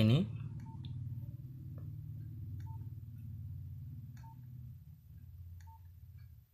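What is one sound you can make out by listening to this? A mobile phone gives a short soft beep with each key press.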